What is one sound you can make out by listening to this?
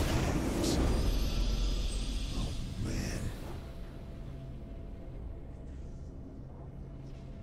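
A triumphant music sting plays and fades.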